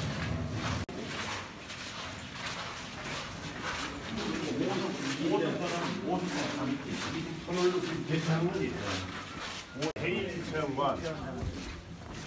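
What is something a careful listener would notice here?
Footsteps shuffle along a hard floor.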